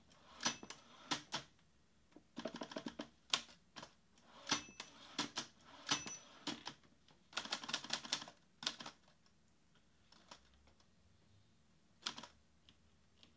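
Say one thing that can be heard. Fingers tap quickly on a laptop keyboard in bursts.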